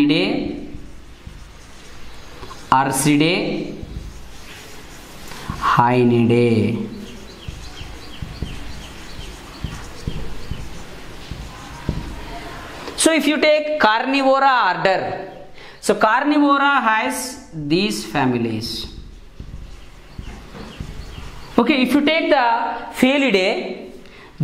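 A man speaks clearly and steadily, as if teaching, close by.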